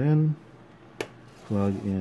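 A small plastic circuit board clicks as it is picked up.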